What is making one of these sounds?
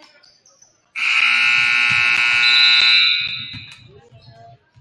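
A buzzer blares loudly in an echoing gym.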